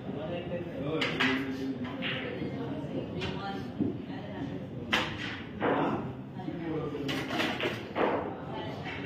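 Billiard balls clack sharply against each other.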